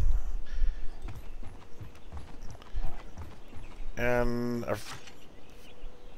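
Footsteps tread on dry dirt.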